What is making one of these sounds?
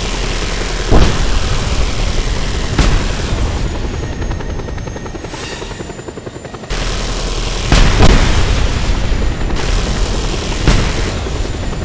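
Explosions boom several times.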